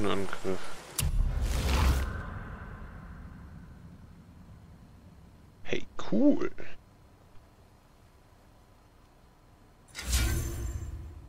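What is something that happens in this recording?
Game menu sounds whoosh and click.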